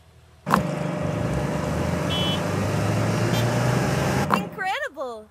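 Fuel gushes steadily from a pump nozzle into a tank, then stops.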